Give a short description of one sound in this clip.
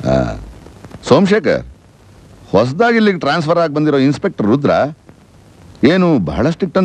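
A man speaks with feeling, close by.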